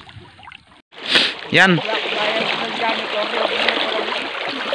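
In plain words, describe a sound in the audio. Water splashes close by.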